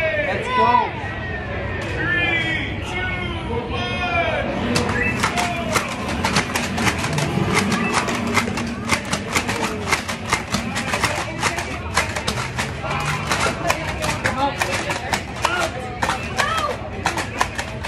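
A crowd chatters in a busy, echoing hall.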